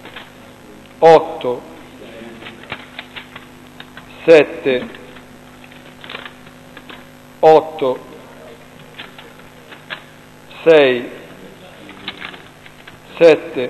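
An elderly man calls out short words loudly at regular pauses in an echoing room.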